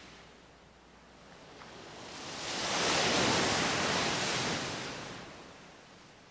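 Waves wash and surge onto a shore.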